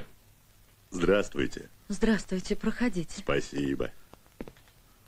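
A second man answers with a friendly greeting.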